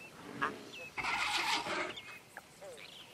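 A small creature squawks shrilly nearby.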